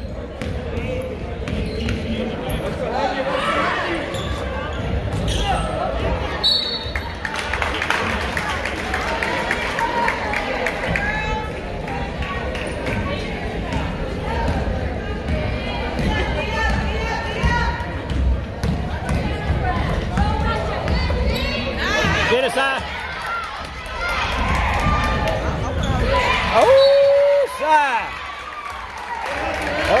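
Sneakers squeak on a hardwood floor in an echoing gym.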